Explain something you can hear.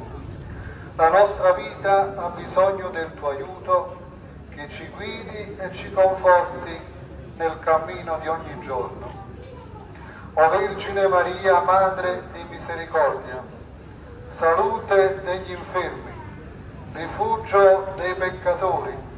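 A man chants a prayer aloud nearby in short, pausing phrases.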